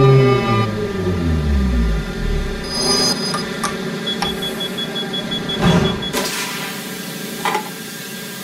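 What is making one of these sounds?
A train rumbles along rails in a tunnel.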